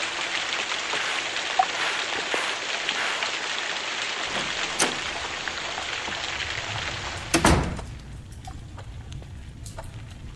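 Gentle waves lap and wash on the sea.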